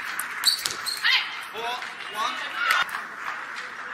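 Young women shout with excitement.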